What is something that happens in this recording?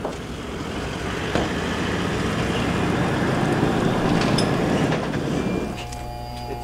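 A pickup truck engine rumbles as it drives slowly past.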